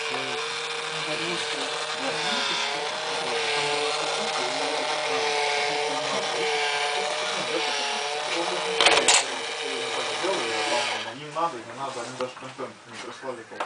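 A battery-powered toy coin bank whirs as it chews a coin.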